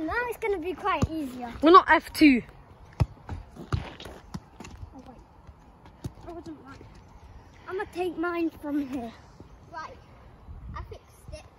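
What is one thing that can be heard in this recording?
A ball thumps on hard ground.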